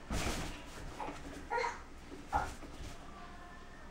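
A small child babbles and squeals nearby.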